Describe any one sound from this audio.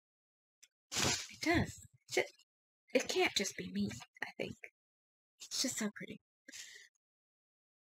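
A woman talks casually, close to a microphone.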